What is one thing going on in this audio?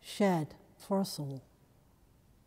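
An elderly woman sings a short phrase in a reverberant hall.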